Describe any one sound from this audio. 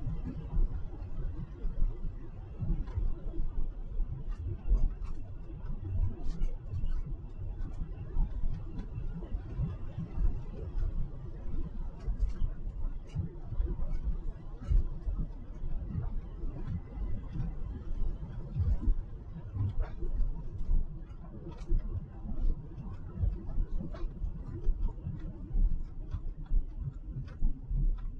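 Tyres hiss on a wet road surface.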